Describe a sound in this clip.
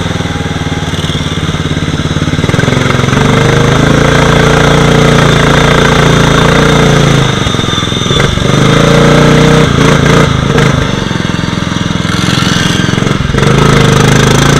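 Muddy water splashes and sprays beside the engine.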